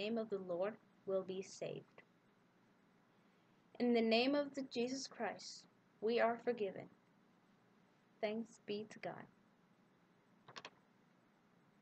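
A young woman speaks calmly and close to a microphone.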